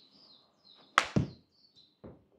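A golf club strikes a ball off a hitting mat with a sharp crack.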